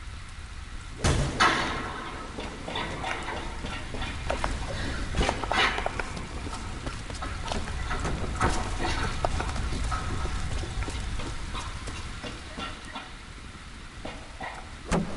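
Footsteps scuff and thud on wooden boards and dirt.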